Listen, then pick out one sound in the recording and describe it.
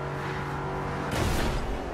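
A car crashes into a pickup truck with a loud bang.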